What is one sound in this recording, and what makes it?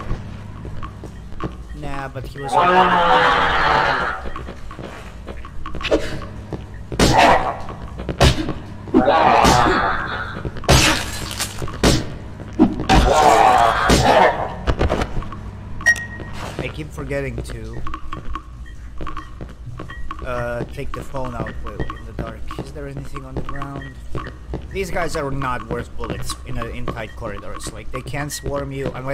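A young man talks and reacts with animation into a close microphone.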